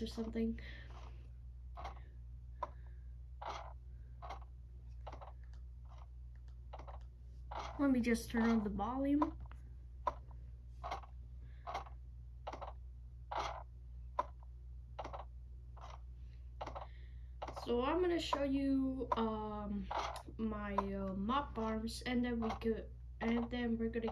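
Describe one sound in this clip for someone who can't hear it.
Video game blocks are placed with quick, regular thuds through a small speaker.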